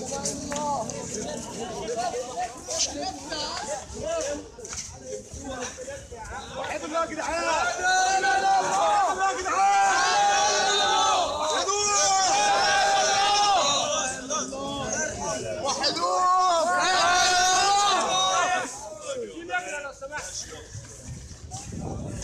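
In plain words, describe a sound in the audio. Men in a crowd call out and murmur close by.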